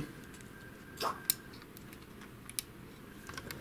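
Small plastic parts click as a gear is fitted onto a shaft.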